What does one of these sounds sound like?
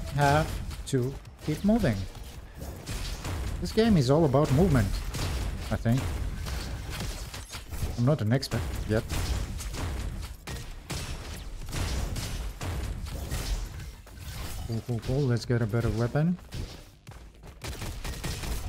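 Rapid gunshots fire repeatedly in a game.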